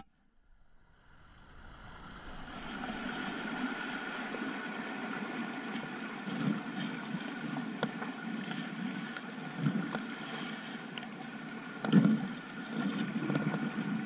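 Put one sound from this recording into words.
Water rushes and splashes steadily around a kayak close by.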